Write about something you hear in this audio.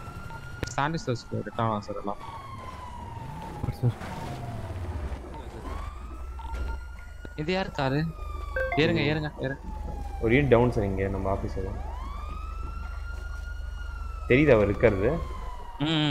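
A police siren wails up and down nearby.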